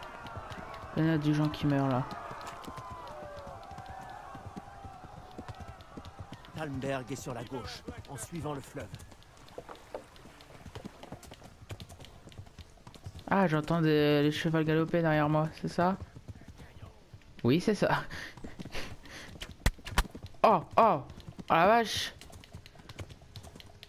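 A horse's hooves clop steadily on a dirt road.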